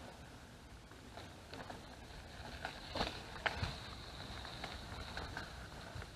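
A bicycle rattles and clatters over a bumpy dirt trail.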